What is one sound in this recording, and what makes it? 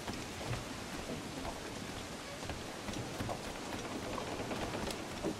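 Footsteps thud quickly on wooden planks.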